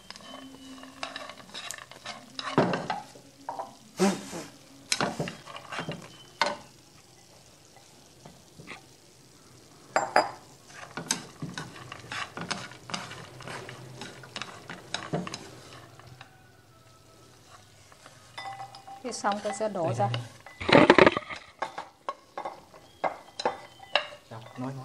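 Chopsticks scrape and rattle against a frying pan.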